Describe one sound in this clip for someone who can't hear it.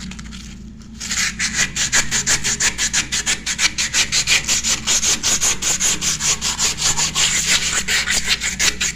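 A hard object scrapes rapidly back and forth against a ceramic sink.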